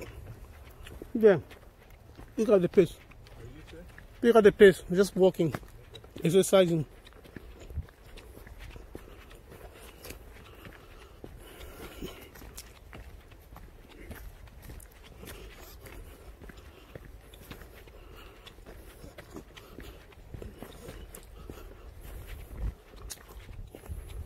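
Footsteps crunch softly on a dirt path scattered with dry leaves.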